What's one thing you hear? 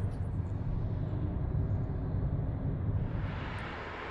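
Cars drive past along a street.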